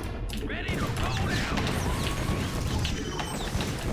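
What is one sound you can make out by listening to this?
Rapid gunfire crackles and bursts.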